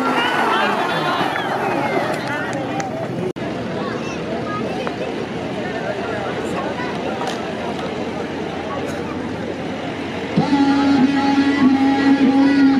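A large crowd of men murmurs and shouts outdoors.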